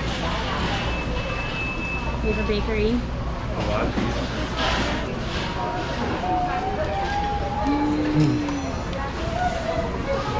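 Many people talk in a low murmur in a large hall.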